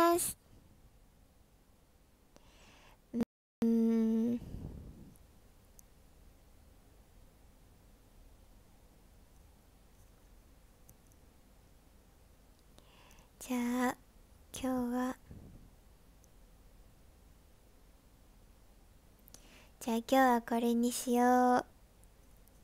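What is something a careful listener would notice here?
A young woman speaks softly in short bursts, close to a microphone.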